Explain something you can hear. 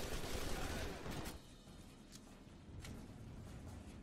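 A rifle is reloaded with a metallic click.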